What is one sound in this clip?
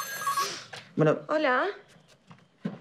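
A woman speaks with emotion close by.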